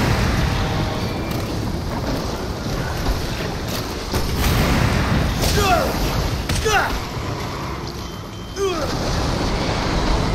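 A monster growls and shrieks.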